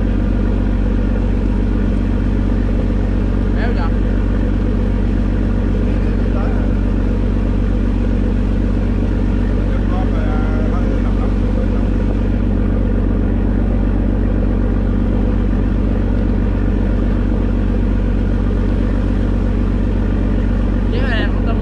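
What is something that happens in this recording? A boat engine drones steadily throughout.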